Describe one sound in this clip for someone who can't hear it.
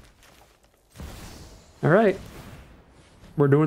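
A magical energy beam whooshes and crackles.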